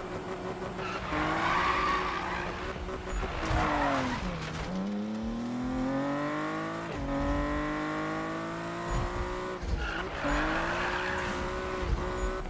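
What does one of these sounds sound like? Tyres screech on wet asphalt during drifts.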